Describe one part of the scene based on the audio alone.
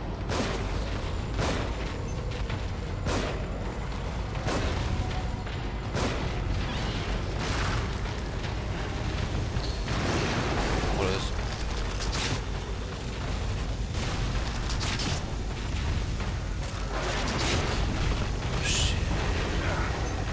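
A monstrous creature growls and roars.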